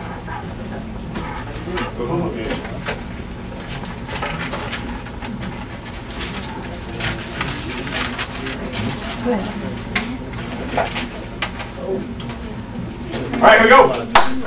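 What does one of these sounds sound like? Students murmur and chatter quietly in a room.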